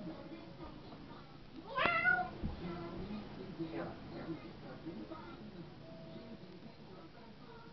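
A small child babbles close by.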